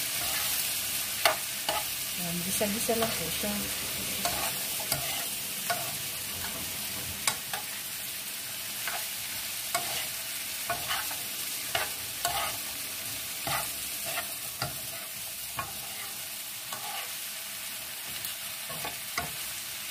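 Vegetables sizzle steadily in a hot frying pan.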